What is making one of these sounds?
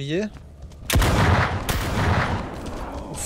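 A shotgun fires with a loud, echoing blast.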